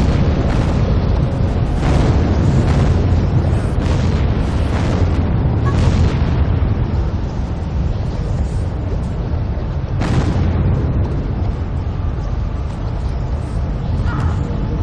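A waterfall roars steadily nearby.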